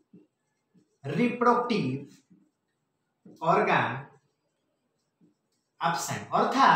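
A young man speaks calmly nearby, explaining in short phrases.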